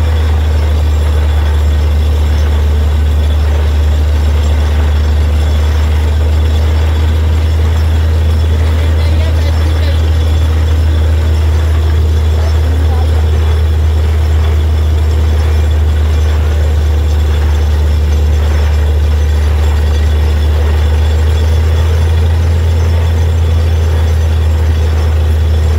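Muddy water gushes and splashes from a borehole.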